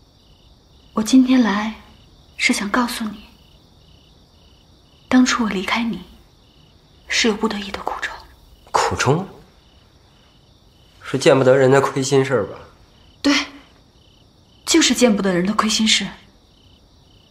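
A young woman speaks softly and earnestly, close by.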